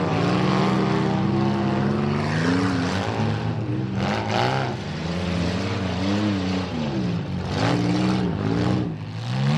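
Car engines roar and rev loudly.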